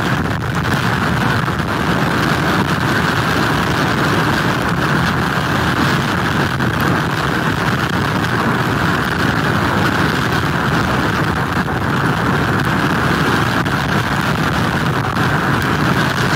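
Strong wind blows hard outdoors, buffeting loudly.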